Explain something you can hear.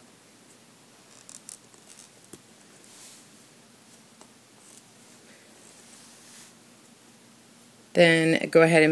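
A metal hook clicks softly against plastic loom pegs.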